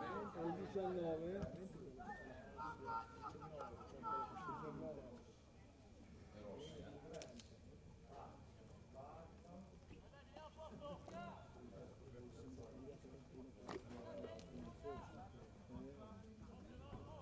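Male players shout to each other in the distance, outdoors on an open field.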